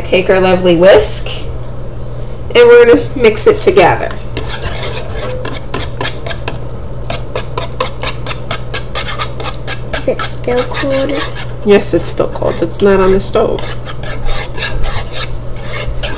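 A wire whisk clinks and scrapes quickly against a metal pot.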